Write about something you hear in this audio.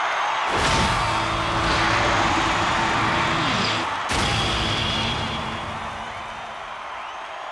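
A rock band strikes loud ringing guitar chords that fade out.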